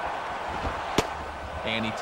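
A pitched baseball smacks into a catcher's mitt.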